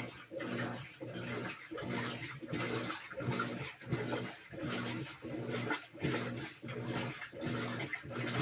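A top-load washing machine agitates its rinse water in rhythmic pulses.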